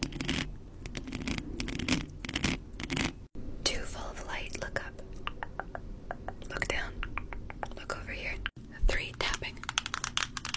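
A young woman whispers softly and closely into a microphone.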